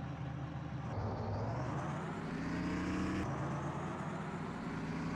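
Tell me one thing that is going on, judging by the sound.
A diesel bus engine revs up as the bus pulls away.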